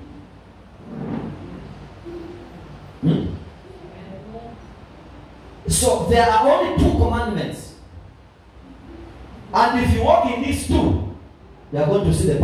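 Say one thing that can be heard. A man preaches with animation through a microphone in an echoing hall.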